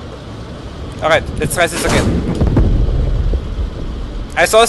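An explosion booms and rumbles nearby.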